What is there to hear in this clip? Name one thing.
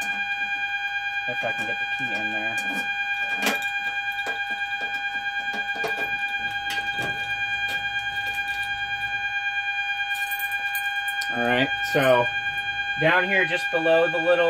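An electronic alarm sounds a steady, rapidly pulsing tone.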